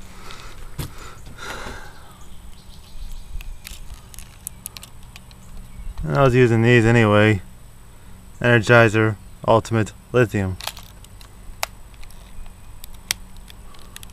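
A small plastic cover clicks open and snaps shut.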